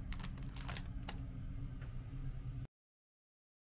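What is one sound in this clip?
Plastic wrapping crinkles and rustles under a hand.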